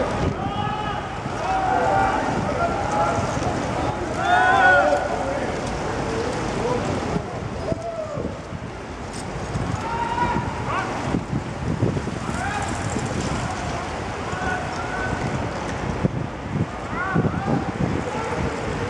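City traffic rumbles steadily in the distance.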